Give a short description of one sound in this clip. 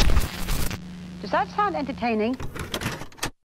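A woman speaks calmly, heard through a television broadcast.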